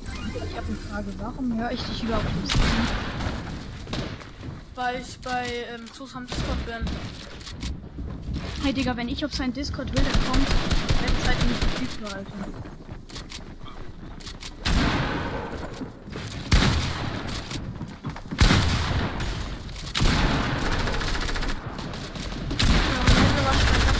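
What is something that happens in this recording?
Wooden walls and ramps clatter rapidly into place.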